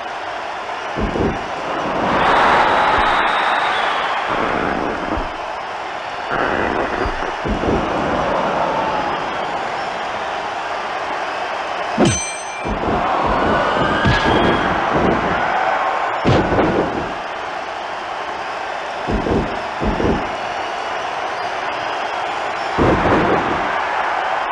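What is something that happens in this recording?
Heavy thuds of bodies slamming onto a wrestling mat.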